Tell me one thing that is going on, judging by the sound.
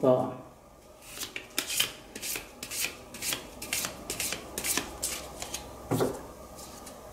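Playing cards are shuffled with quick, light clicks.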